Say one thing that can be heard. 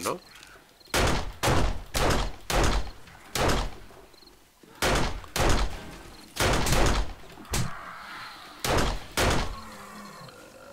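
Sharp blows knock repeatedly against a wooden frame.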